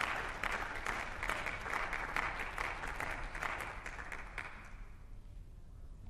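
A crowd applauds loudly in a large hall, then the clapping fades.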